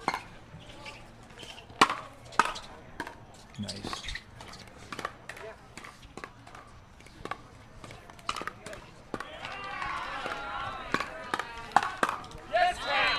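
Paddles strike a plastic ball with sharp, hollow pops in a quick rally.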